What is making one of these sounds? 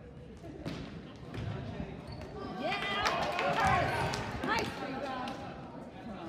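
Sneakers squeak on a gym floor.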